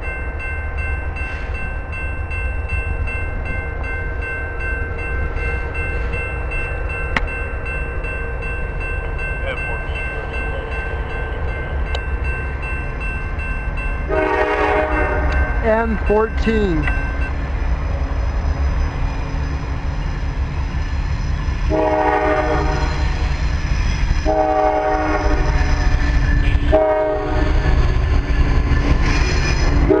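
A diesel locomotive rumbles as it approaches.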